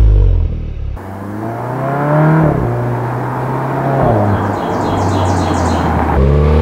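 A car engine roars as a car approaches from a distance.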